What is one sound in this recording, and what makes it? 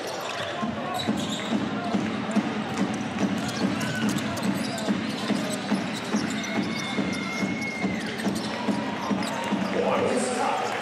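A basketball bounces rhythmically on a hardwood floor in a large echoing hall.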